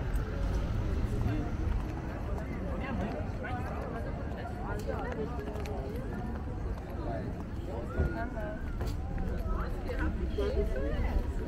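A crowd of young men and women chat and laugh nearby, outdoors.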